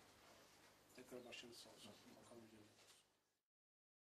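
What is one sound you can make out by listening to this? A man speaks briefly in a room.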